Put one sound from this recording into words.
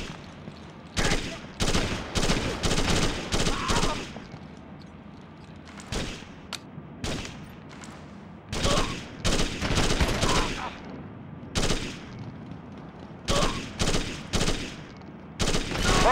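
Bursts of rifle fire crack out close by, with short echoing tails.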